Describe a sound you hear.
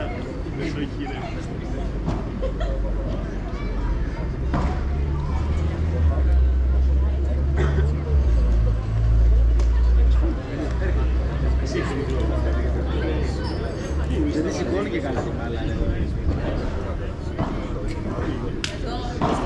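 Padel balls pop sharply off rackets in a rally.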